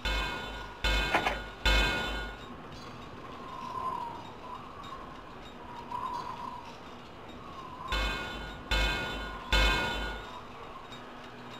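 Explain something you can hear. Metallic clanks ring out as railway track is laid in a game.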